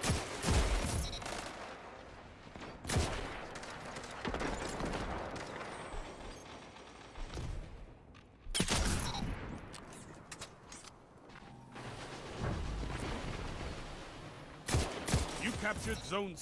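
Gunshots fire in loud bursts, with echoing booms.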